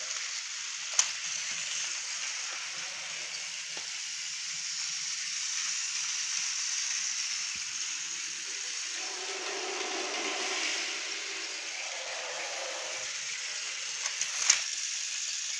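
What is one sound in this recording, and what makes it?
A hand knocks a toy train against the track.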